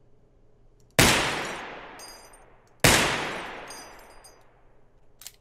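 A pistol fires two loud shots that echo and slowly fade.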